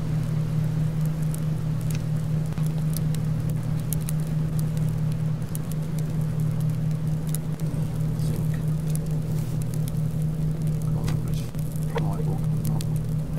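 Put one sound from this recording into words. Soft menu clicks tick now and then.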